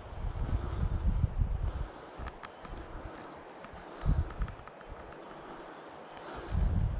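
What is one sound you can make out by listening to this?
Wind buffets and rumbles in gusts outdoors.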